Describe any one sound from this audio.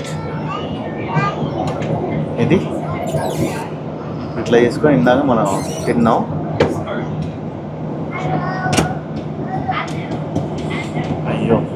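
A folding tray table clicks and knocks as it is unfolded and folded away.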